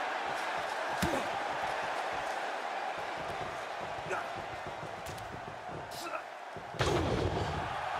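Punches land with sharp smacks.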